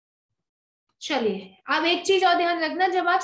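A woman speaks clearly through a microphone, as on an online call.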